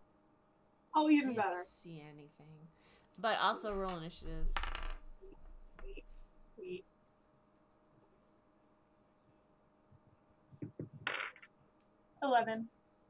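A woman talks with animation over an online call.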